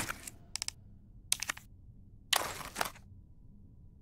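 Game menu sounds click in quick bursts.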